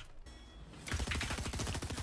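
A pickaxe strikes and smashes a wooden crate.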